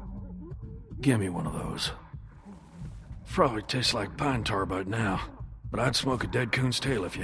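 A middle-aged man talks in a low, tired voice.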